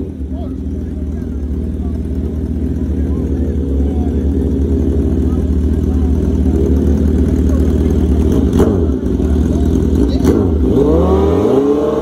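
Motorcycle engines rumble and rev loudly close by.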